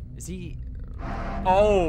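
A young man shouts in fright close to a microphone.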